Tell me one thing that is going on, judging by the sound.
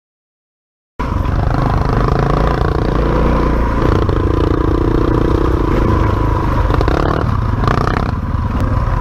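A dirt bike engine revs loudly close by.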